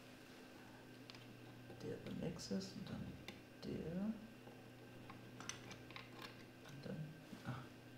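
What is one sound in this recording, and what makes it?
A small plastic plug clicks into a socket.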